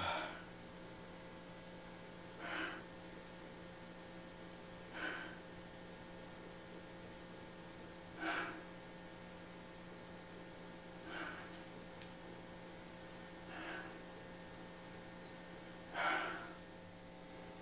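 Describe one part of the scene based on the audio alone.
A man breathes out sharply in short breathy bursts, close by.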